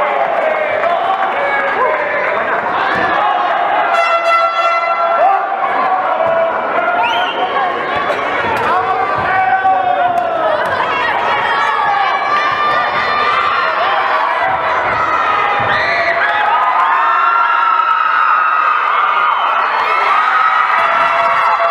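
A crowd shouts and cheers in an indoor arena.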